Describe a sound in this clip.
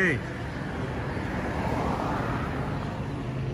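A car passes by on the road.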